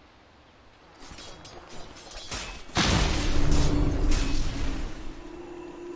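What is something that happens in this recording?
Magic blasts and weapon strikes clash in a fast game fight.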